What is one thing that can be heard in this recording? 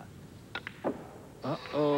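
Billiard balls click sharply together.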